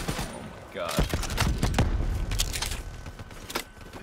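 A rifle's metal parts click and clatter as it is handled.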